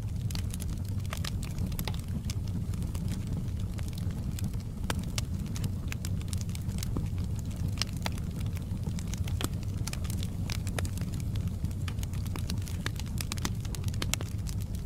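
Burning logs crackle and pop.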